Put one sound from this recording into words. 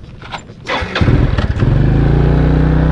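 A motorbike engine starts and runs with a low rumble.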